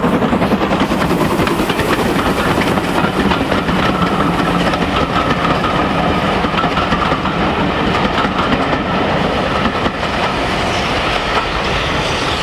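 Train carriages rattle and clatter over the rails.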